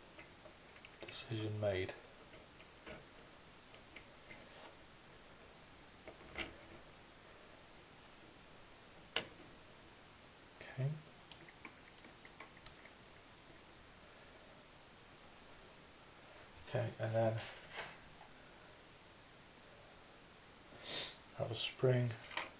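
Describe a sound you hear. Small plastic and metal parts click and tap as they are pressed into place.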